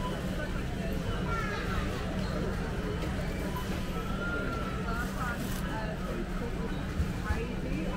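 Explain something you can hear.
Shopping trolleys rattle as they roll.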